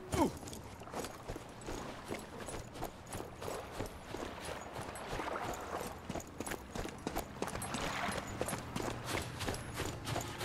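Footsteps crunch quickly on sand.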